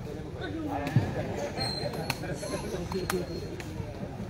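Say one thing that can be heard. A ball thuds off a player's foot.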